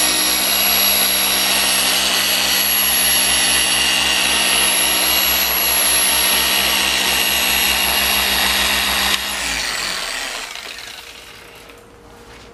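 An electric polisher whirs steadily and close, then winds down.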